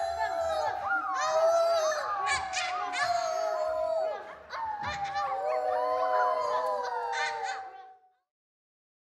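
A group of young children sing together.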